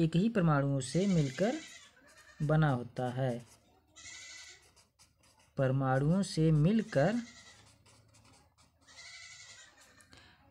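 A pen scratches across paper as it writes.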